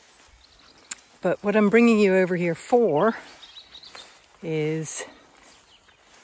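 A dog runs through long grass, rustling it.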